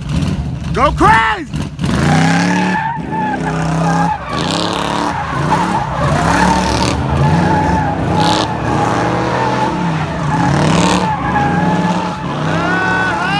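Car engines rev loudly and repeatedly close by.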